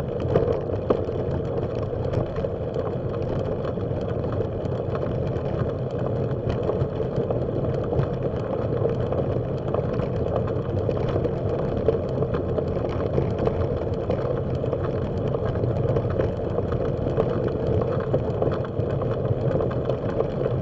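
Bicycle tyres crunch steadily over gravel.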